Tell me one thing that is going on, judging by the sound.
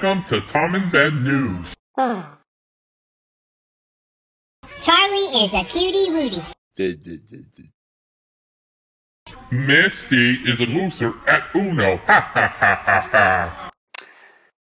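A cartoon character speaks animatedly in a deep, playful male voice.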